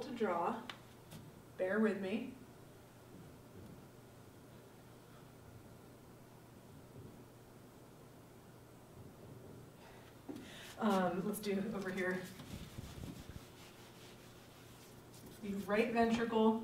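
A young woman speaks calmly, pausing now and then.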